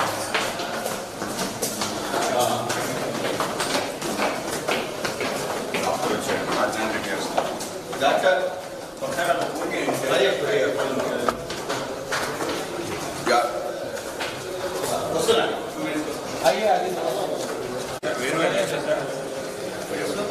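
Several men chatter and talk over one another nearby.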